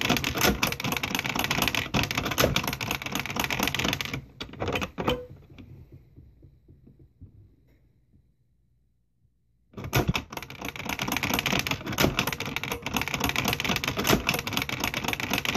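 Plastic toy keys click as they are pressed.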